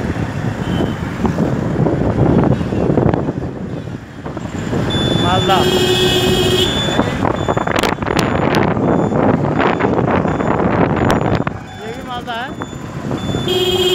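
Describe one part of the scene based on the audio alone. Traffic rumbles close by on a busy road.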